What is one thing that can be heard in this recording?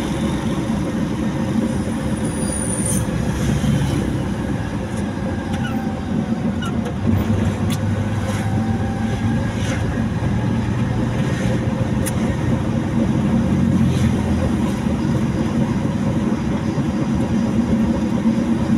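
Tyres roar on asphalt.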